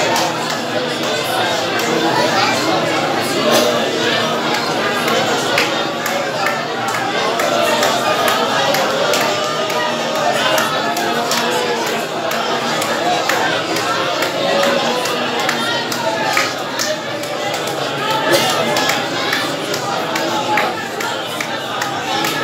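A man speaks loudly to a crowd.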